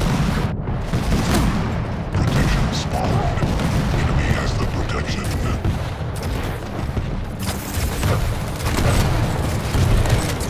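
A game weapon fires repeatedly with loud blasts.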